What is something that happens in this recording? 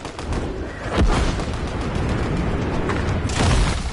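A heavy thump sounds as a figure lands on the ground.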